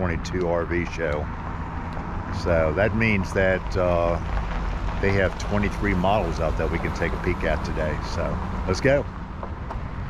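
A middle-aged man talks with animation close to the microphone.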